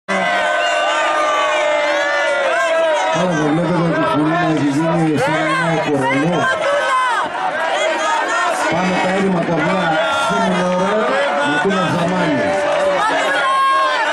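A man sings loudly into a microphone, amplified through loudspeakers.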